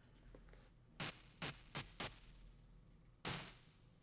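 Short drum hits play as pads are tapped.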